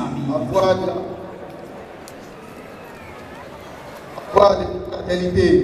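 A crowd of adults chatters outdoors.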